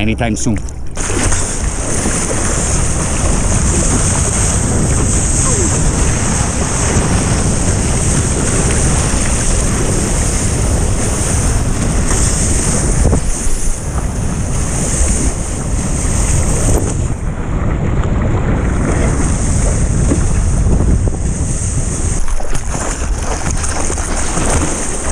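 Water rushes and splashes loudly around a surfboard.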